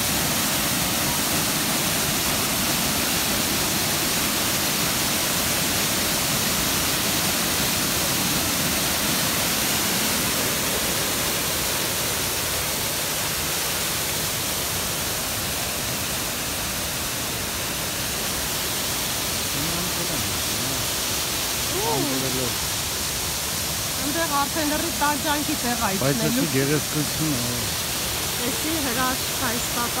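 A waterfall pours and splashes steadily into a pool.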